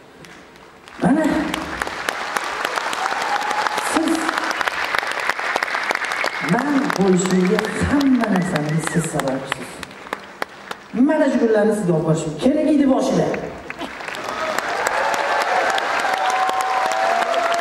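A crowd cheers and screams.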